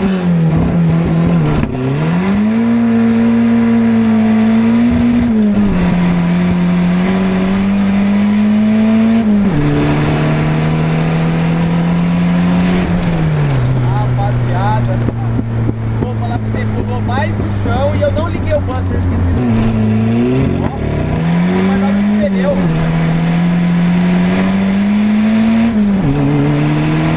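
A car engine hums steadily, its pitch rising and then dropping as gears change.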